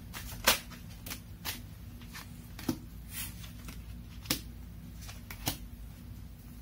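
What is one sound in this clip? Fingers tap and click softly on a small object, close by.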